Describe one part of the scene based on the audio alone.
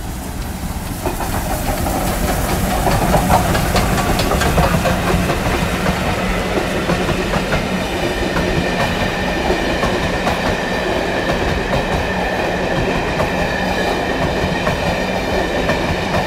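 Steel wheels rumble and clatter over the rails as a train passes close by.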